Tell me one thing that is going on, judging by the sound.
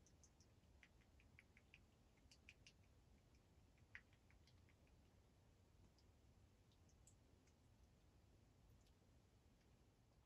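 A rabbit laps water from a metal bowl with quick little clicks.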